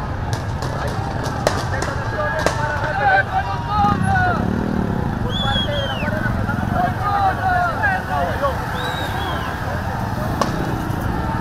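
Gunshots bang sharply several times.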